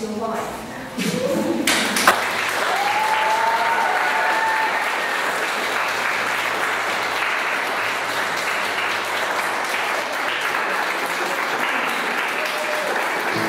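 A crowd claps and cheers in a large room.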